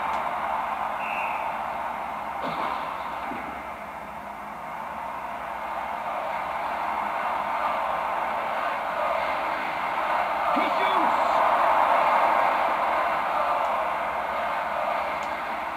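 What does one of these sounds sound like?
A game crowd roars steadily through a television speaker, swelling louder toward the end.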